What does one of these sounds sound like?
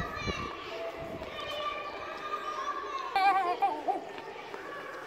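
Children shout and cheer excitedly.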